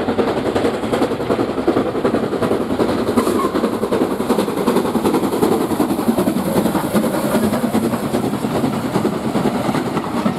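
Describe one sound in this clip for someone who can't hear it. A steam locomotive chuffs loudly as it approaches and passes close by.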